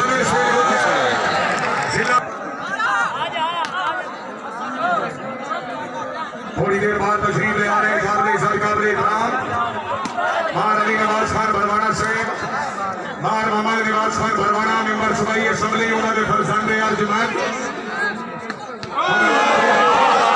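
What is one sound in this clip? A large crowd of men shouts and cheers outdoors.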